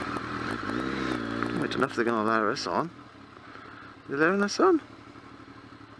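A motorcycle engine revs up and down briefly.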